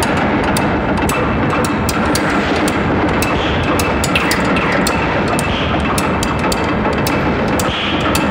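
A man shouts loudly and harshly into a close microphone, heavily distorted.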